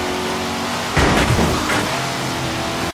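A car crashes into another car with a thud.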